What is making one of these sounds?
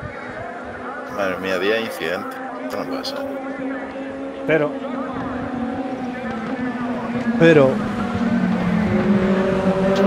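Racing car engines drone steadily and rise in pitch as the cars speed along.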